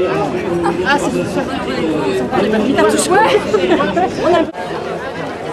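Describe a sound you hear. Women chat and laugh close by outdoors.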